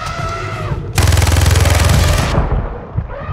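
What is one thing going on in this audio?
An elephant trumpets loudly.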